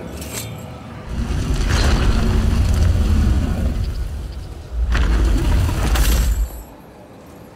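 A deep rumble roars loudly, then stops.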